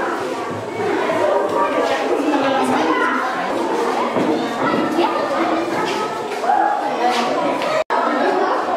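Many children chatter in a large echoing hall.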